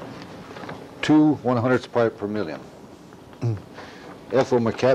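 An elderly man speaks slowly and deliberately in a lecture voice.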